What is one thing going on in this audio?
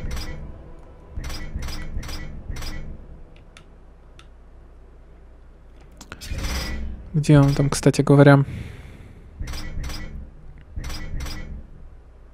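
Short electronic menu clicks sound one after another.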